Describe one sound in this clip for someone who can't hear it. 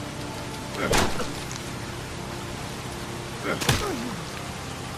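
A man grunts in pain.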